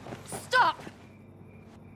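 A young woman shouts sharply.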